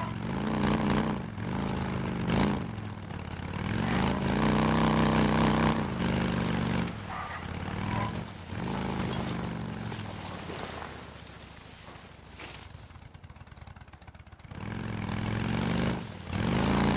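A motorcycle engine revs and roars, rising and falling as it speeds up and slows down.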